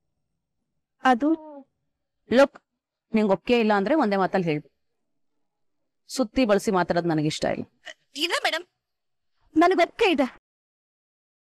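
A woman speaks tensely into a phone, close by.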